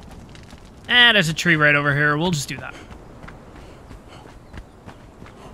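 Footsteps run quickly over soft sand.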